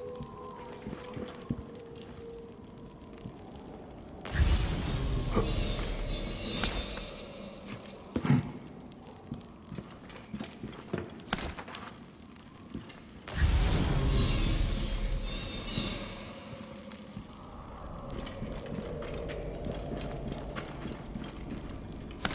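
Footsteps patter on a stone floor.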